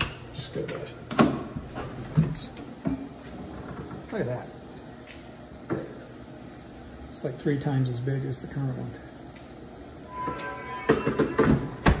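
A metal door latch clicks and clunks.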